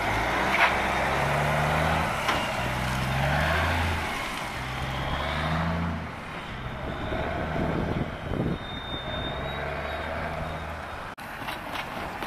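A truck engine rumbles and idles nearby.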